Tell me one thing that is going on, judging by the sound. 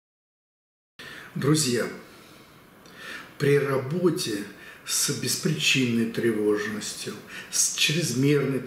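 An elderly man speaks calmly and with expression, close to a microphone.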